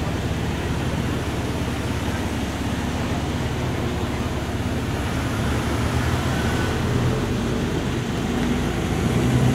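Cars drive past one after another on a street.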